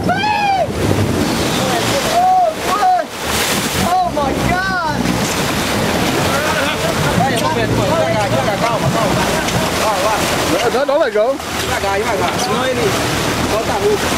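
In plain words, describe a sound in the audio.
Water rushes and churns against a boat's hull.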